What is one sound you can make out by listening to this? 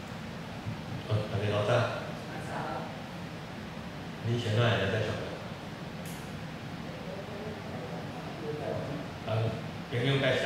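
A man speaks through a microphone over loudspeakers in a room, in short bursts with pauses.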